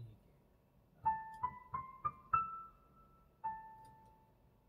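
A piano plays a few single notes.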